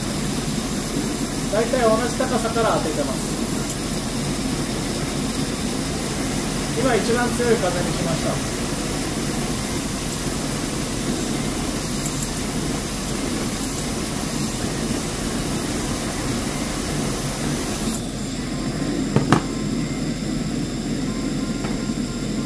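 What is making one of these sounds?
A gas burner hisses and roars steadily.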